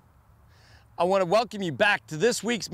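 A man speaks calmly to the listener, outdoors and close by.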